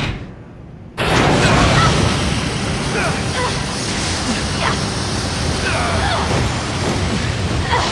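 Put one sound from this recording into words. A loud blast roars and rumbles on.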